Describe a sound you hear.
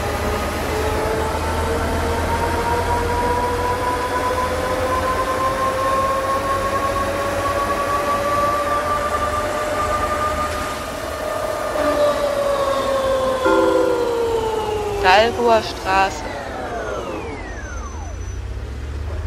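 A bus engine whines, rising in pitch and then winding down as the bus slows.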